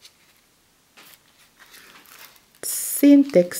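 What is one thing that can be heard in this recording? Paper pages rustle as a book's page is turned.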